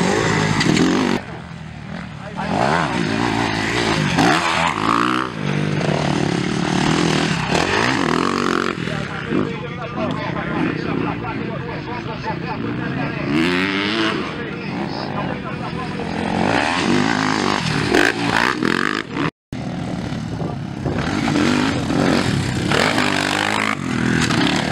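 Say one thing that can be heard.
Dirt bike engines rev and whine up and down close by.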